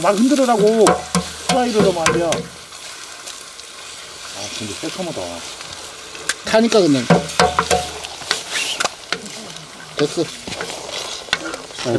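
A spatula scrapes and clatters in a wok.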